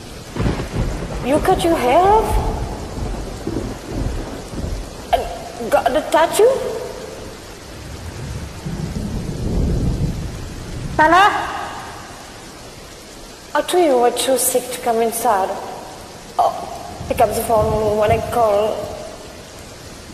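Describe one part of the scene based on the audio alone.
A young woman sings with feeling close to a microphone.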